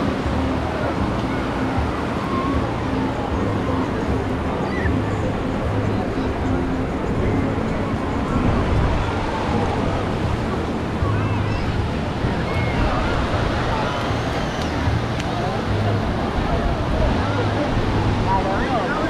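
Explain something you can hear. A crowd of people chatters and shouts on a beach outdoors.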